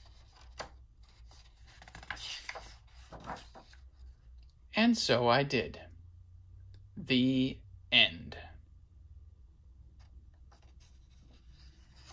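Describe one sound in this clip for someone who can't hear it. A stiff book page turns with a soft paper rustle.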